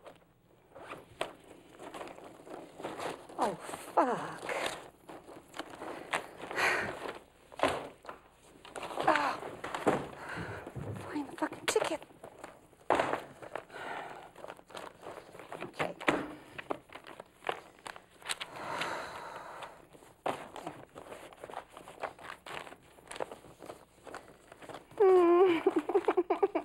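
A woman talks to herself with emotion, close by.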